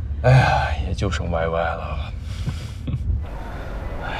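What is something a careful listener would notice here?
A man speaks calmly and cheerfully up close.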